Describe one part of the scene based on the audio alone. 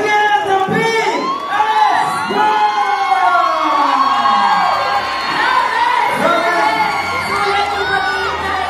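Music plays loudly through loudspeakers outdoors.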